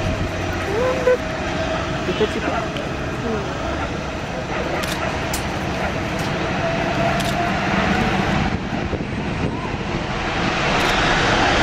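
The four turbofan engines of a C-17 military jet transport roar, spooling up on the runway.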